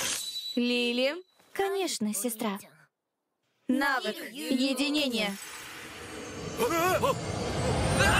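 A young man speaks with animation in a cartoon voice.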